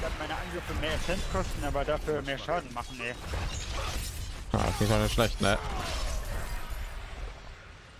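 Magic blasts crackle and boom in a fight.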